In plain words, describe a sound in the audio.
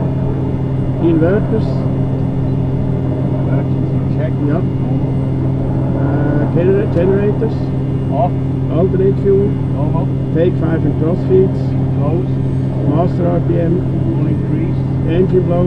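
An elderly man speaks calmly through a headset microphone.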